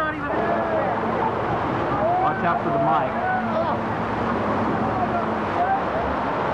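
An outboard motor drones close by.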